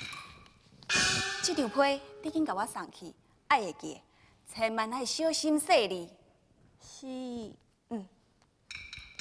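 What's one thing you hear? A young woman sings in a high, ornamented operatic voice.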